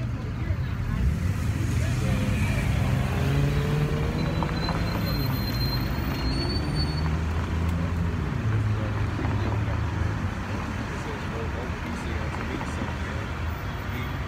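A bus engine rumbles close by as the bus pulls up.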